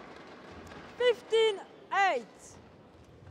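A young woman shouts loudly in celebration.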